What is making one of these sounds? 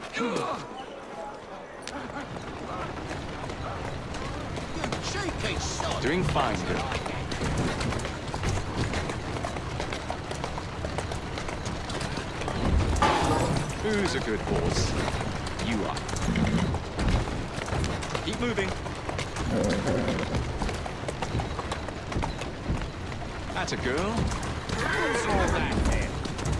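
A horse-drawn carriage rattles over cobblestones.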